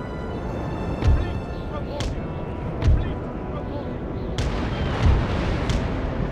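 Cannons boom in heavy thuds.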